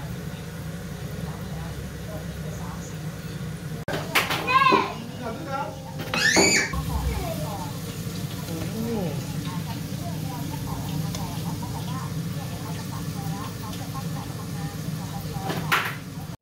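Sausages sizzle and crackle in hot oil in a frying pan.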